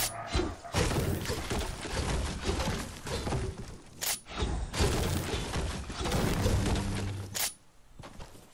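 A pickaxe strikes wood again and again.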